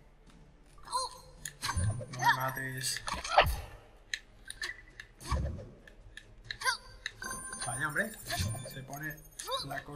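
Coins jingle with bright chimes as they are collected.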